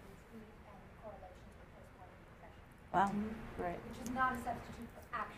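A woman speaks through a microphone, quietly at first and then louder and more animated.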